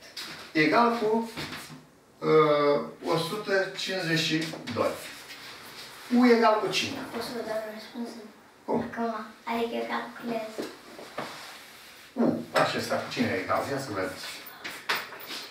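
An elderly man speaks calmly and clearly, close by.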